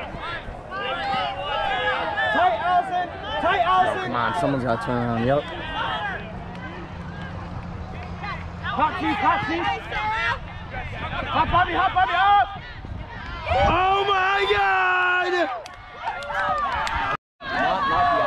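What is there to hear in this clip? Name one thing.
Young men and women shout to one another outdoors across an open field.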